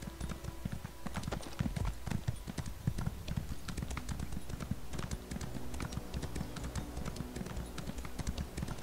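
Horse hooves pound quickly on soft ground.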